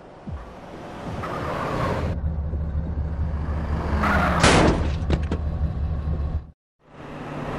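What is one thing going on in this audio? Car engines roar as cars speed down a street.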